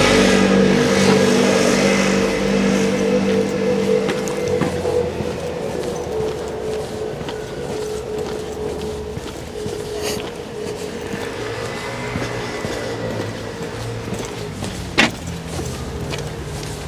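Footsteps walk along a paved pavement outdoors.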